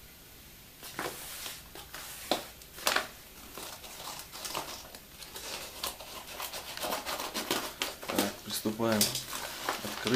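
Scissors snip through a padded paper envelope.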